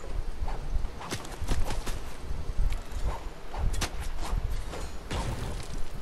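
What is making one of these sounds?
A pickaxe swishes and clangs against metal.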